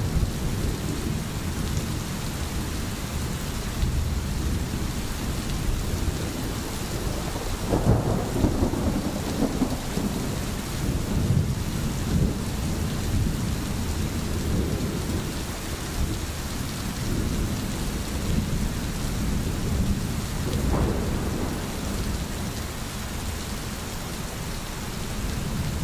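A stream babbles and gurgles over stones.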